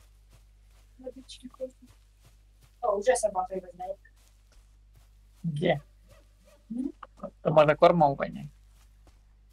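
A young man speaks close to a microphone in short bursts.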